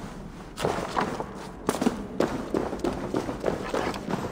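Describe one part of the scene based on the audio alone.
Footsteps crunch on a dirt floor.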